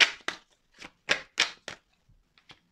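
Cards are shuffled with quick, crisp flicks.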